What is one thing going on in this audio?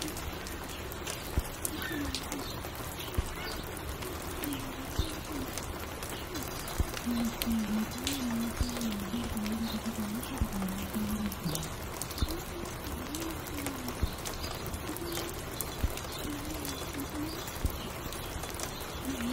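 A vinyl record crackles and pops.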